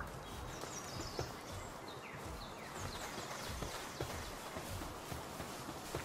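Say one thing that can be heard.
Footsteps run over soft ground.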